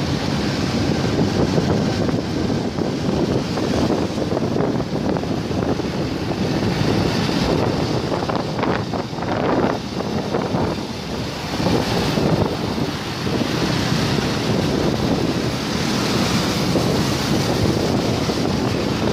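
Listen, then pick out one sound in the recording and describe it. Traffic hums steadily along a road.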